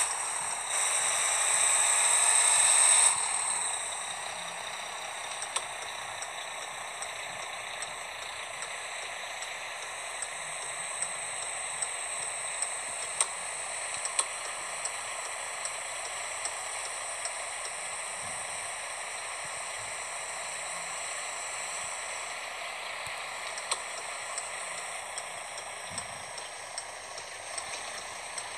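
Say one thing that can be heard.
A truck engine hums steadily as it drives slowly.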